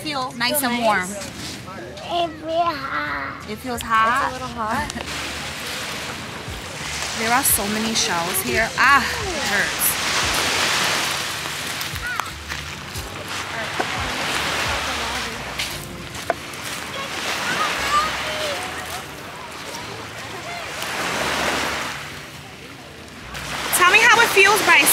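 A young child talks in a high voice close by.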